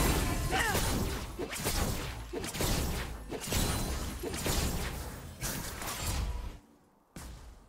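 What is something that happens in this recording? Fiery magic blasts whoosh and crackle during a fight in a video game.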